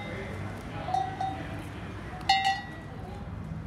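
Sheep bleat close by.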